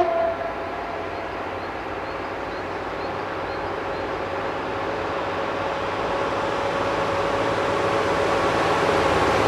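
A railcar's diesel engine rumbles as it approaches, growing steadily louder.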